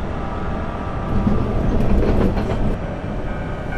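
A train's wheels clatter over rail joints and points.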